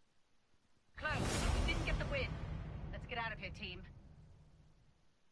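A short musical sting plays as a game round ends.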